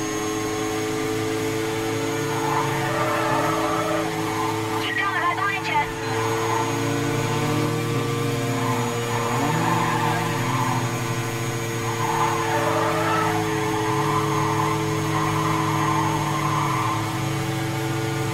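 A racing car engine roars at high speed, its pitch rising and falling with gear shifts.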